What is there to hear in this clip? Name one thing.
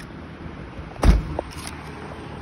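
A glass door opens and bangs shut.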